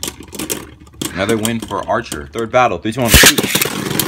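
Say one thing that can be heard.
Hands clatter plastic parts together.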